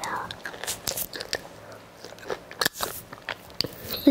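A young girl crunches food close to a microphone.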